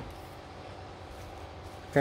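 A plastic wrapper rustles.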